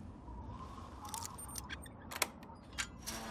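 A lock clicks and scrapes as it is picked.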